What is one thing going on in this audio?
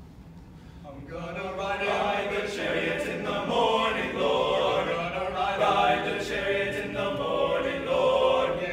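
A choir of young men sings together in a large hall.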